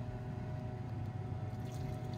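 Liquid pours into a glass beaker.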